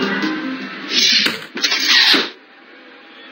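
Swords clash in a video game fight.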